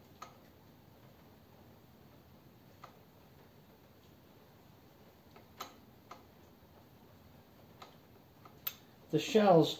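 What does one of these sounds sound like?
Metal parts clink and tap together now and then.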